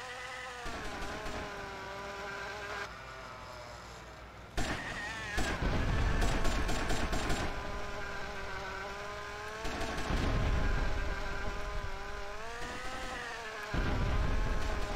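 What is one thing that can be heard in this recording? A small model plane engine buzzes steadily, rising and falling in pitch.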